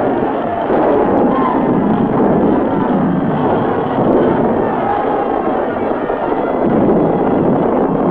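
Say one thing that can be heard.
Cannons boom and explosions roar in a battle.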